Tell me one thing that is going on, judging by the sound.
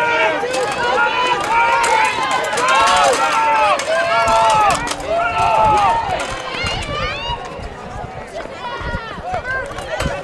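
A crowd of spectators cheers and shouts loudly nearby, outdoors.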